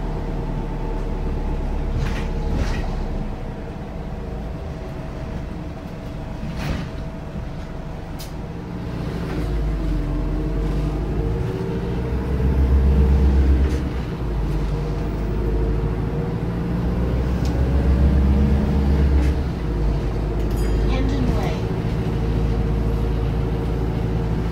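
A bus engine rumbles and whines steadily as the bus drives.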